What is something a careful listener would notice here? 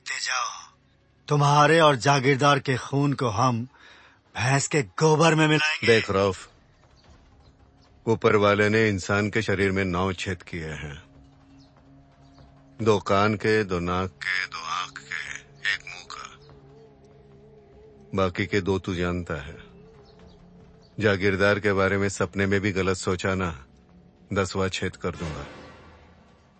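An older man speaks in a low, measured voice, close by.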